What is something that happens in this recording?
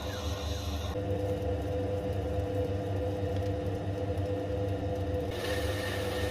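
Toothbrush bristles brush against a spinning threaded part.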